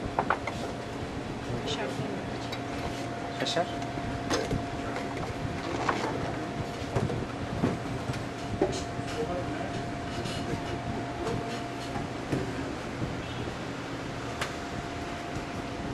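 Plastic containers and jars clink and rattle on a counter.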